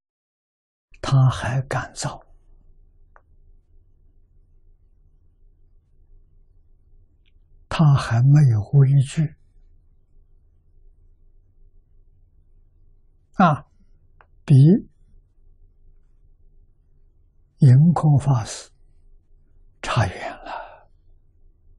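An elderly man speaks calmly into a microphone, pausing between short phrases.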